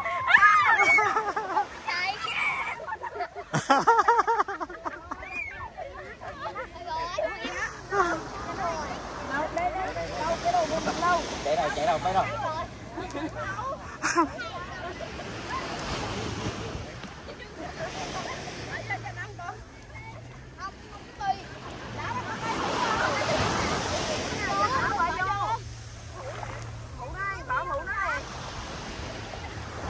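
Women talk and call out to one another outdoors.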